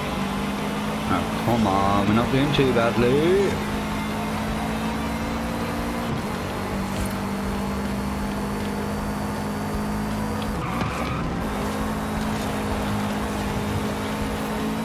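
A car engine drones steadily at high revs.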